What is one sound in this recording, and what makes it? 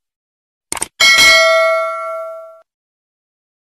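A bright bell chimes once and rings out.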